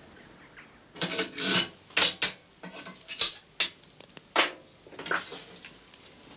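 Metal pans clatter and clank on a stove.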